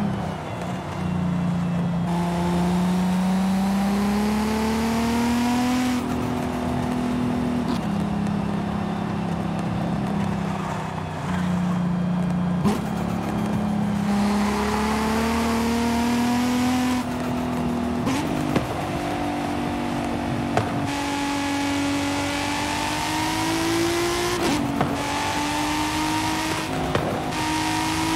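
Tyres hum on an asphalt road.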